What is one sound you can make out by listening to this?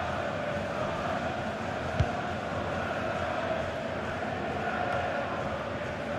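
A large crowd roars and cheers steadily in a stadium.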